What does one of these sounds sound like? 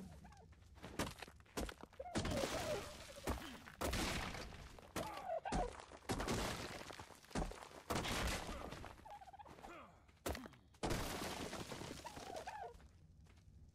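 A pickaxe strikes rock with sharp, repeated blows.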